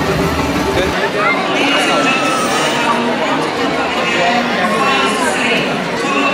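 A large crowd murmurs and chatters outdoors.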